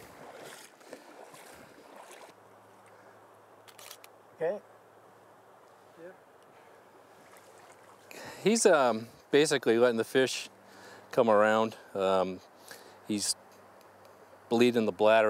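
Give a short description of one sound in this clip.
Water splashes softly as hands move through a shallow river.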